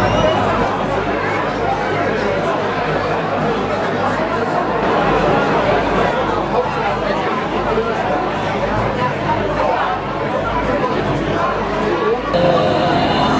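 A crowd of men and women chatters all at once, close by.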